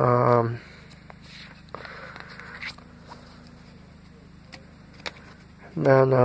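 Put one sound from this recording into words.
Stiff paper rustles softly as a hand presses it against a blanket.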